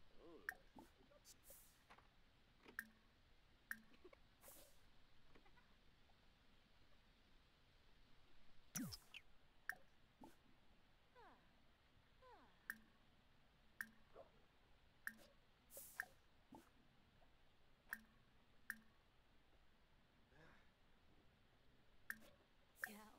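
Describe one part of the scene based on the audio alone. Short soft clicks and chimes sound as menu choices pop up and are picked.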